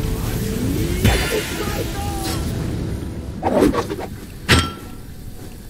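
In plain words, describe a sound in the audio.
Electric bolts zap loudly.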